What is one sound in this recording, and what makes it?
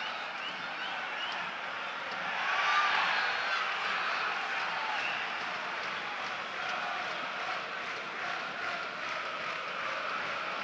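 A stadium crowd roars and chants steadily.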